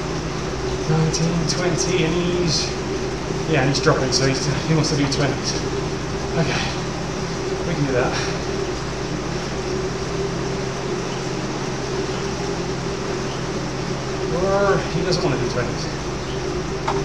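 A man speaks breathlessly and close to a microphone.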